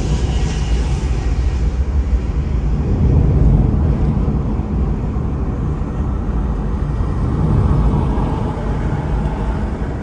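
Tyres hum steadily on asphalt as a vehicle drives along a road.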